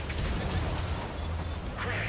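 A shell explodes with a loud blast.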